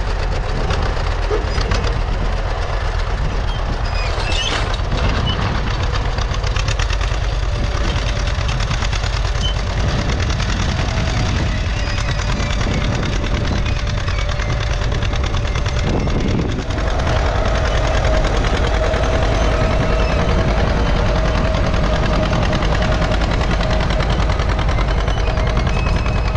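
A tractor engine chugs steadily close by.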